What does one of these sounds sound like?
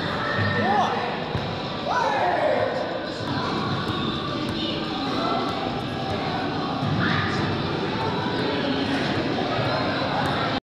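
Young men call out and laugh in a large echoing hall.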